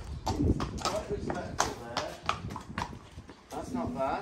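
Horse hooves clop on concrete.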